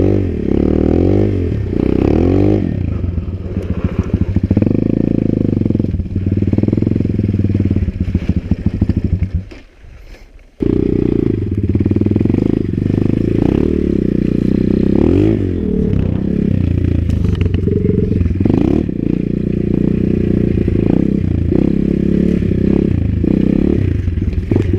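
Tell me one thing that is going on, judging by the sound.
A dirt bike engine revs hard as it rides over dirt and mud.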